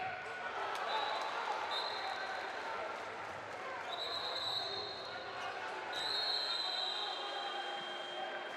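A referee's whistle blows several short shrill blasts.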